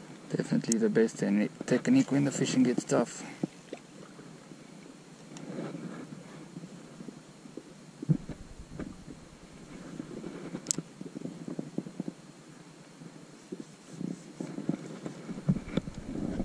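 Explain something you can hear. A fishing reel clicks and whirs as its handle is cranked close by.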